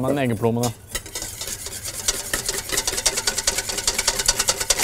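A whisk rattles quickly against a metal bowl.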